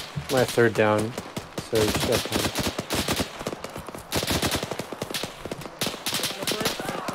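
Footsteps crunch quickly over dry grass.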